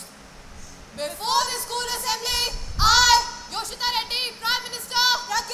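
Young girls sing together through a microphone in a large hall.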